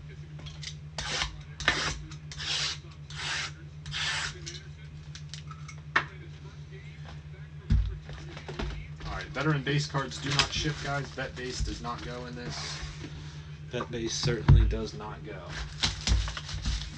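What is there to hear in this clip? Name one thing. Cardboard boxes rustle and knock as they are handled.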